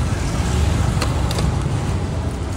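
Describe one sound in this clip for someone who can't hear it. A plastic straw pokes through a cup lid and rattles against ice.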